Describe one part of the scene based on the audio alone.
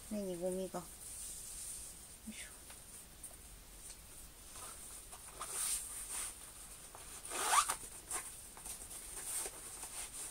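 Fabric rustles as a sash is pulled and tied.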